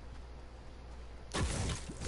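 A pickaxe strikes stone with sharp, repeated knocks.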